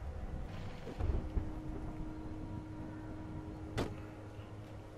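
A car door opens and thuds shut.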